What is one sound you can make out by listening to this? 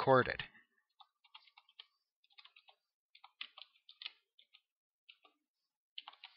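Keys on a keyboard click in quick bursts of typing.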